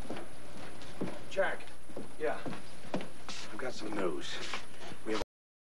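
A middle-aged man speaks briskly.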